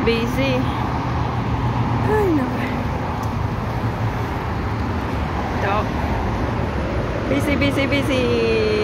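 Traffic roars steadily on a highway nearby.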